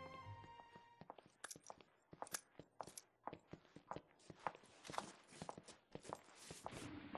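High heels click on a hard floor in slow steps.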